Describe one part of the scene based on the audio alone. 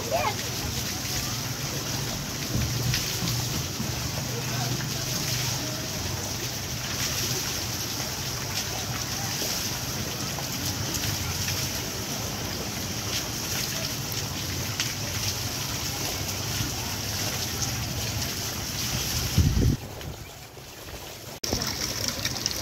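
Water splashes and pours off a turning water wheel.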